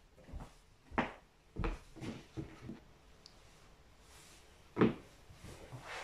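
Footsteps knock on a hard floor nearby.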